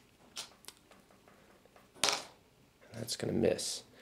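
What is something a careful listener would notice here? Small game pieces click and tap against a board.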